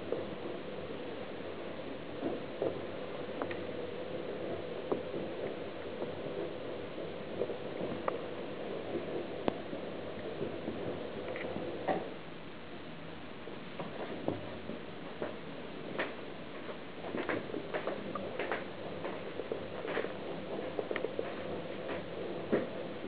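A feather toy rustles as it is dragged across fabric.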